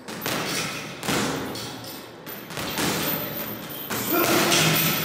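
Boxing gloves thud against a punching bag in an echoing room.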